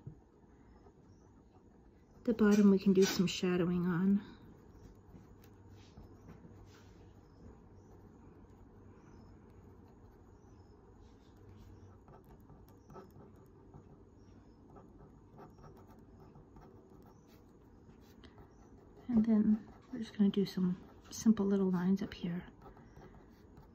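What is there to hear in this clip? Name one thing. A fine-tip pen scratches softly on paper.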